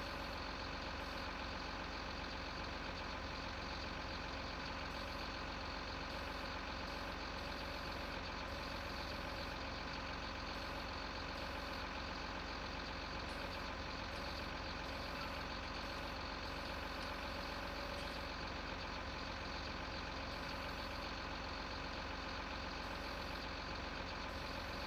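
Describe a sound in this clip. A diesel engine hums steadily.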